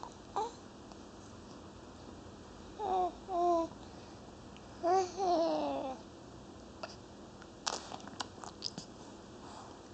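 A baby sucks noisily on its fist.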